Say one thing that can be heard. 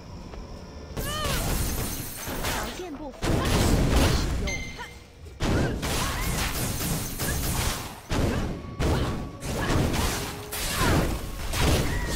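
Game combat effects whoosh and clash loudly.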